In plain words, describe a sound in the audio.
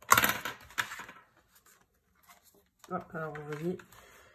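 Paper rustles and slides across a hard surface.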